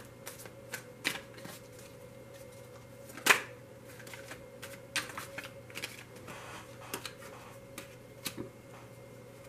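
Cards tap and slide softly on a table.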